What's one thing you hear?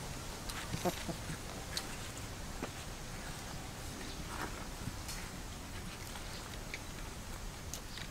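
A cat chews and laps food.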